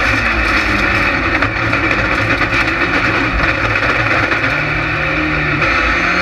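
A rallycross car's engine roars at full throttle, heard from inside the cockpit.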